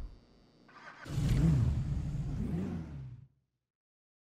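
A car engine starts up and revs in a garage.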